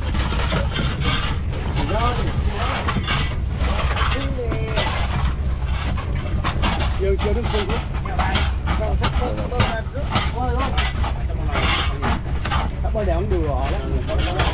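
Objects knock and clatter inside a hollow hold.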